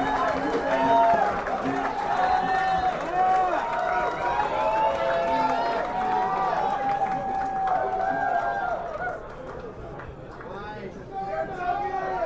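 Electric guitars play loudly through amplifiers.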